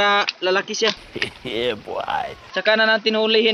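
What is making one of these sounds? A man sings loudly in a playful voice.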